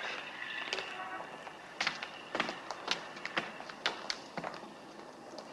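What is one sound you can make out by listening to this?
Footsteps climb hard stone steps.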